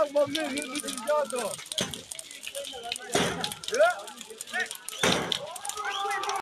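A large fire roars and crackles loudly.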